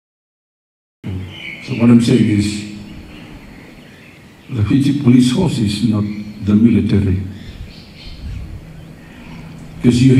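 An elderly man speaks calmly into a microphone, heard through a loudspeaker.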